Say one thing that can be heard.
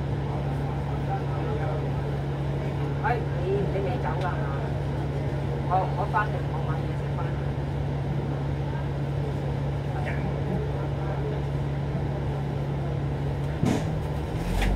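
A vehicle's engine idles with a steady low hum.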